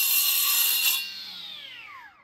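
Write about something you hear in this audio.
A power saw winds down as the motor stops.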